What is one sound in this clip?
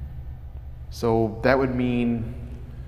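A man speaks up suddenly and loudly, close by.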